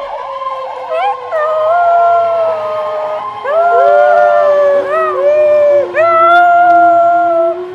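A young man loudly imitates a siren with his voice, close by.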